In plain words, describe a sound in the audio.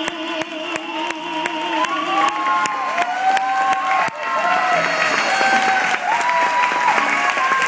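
A crowd claps along in a steady rhythm.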